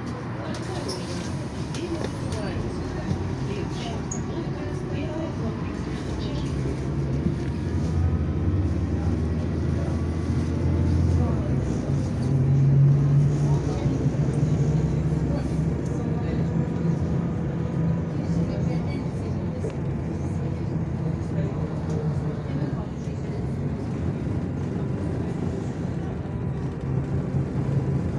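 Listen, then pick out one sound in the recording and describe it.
A vehicle engine hums low and steady from inside, with its pitch rising and falling.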